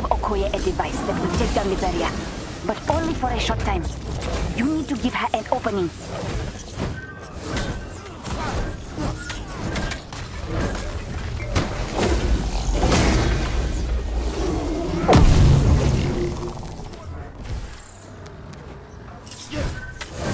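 Energy blasts burst and crackle.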